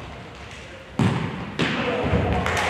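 A ball thuds as it is kicked hard in a large echoing hall.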